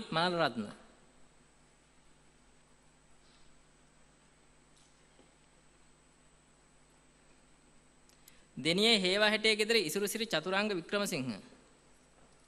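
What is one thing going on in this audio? A man announces through a loudspeaker in a large hall.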